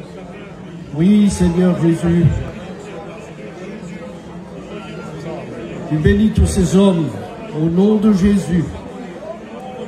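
A man prays loudly and fervently through a loudspeaker.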